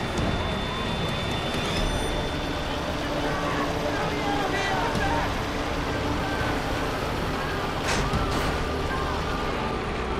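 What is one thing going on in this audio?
A tank engine rumbles and its tracks clank steadily.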